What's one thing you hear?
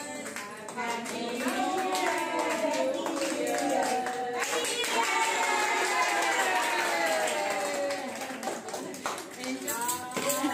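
A group of women sing together in a room.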